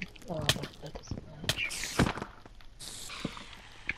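A sword swishes and thuds against a spider.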